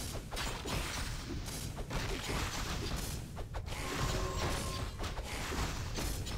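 Weapons clash and spells burst in a busy fantasy battle.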